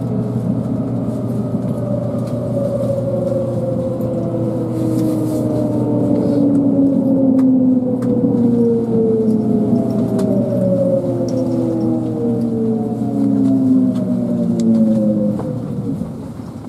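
A train's motor whines, falling steadily in pitch as it slows.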